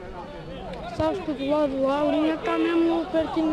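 Men on the sideline shout loudly and excitedly.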